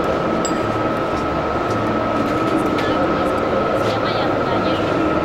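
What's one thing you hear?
A crowd chatters steadily in a large echoing hall.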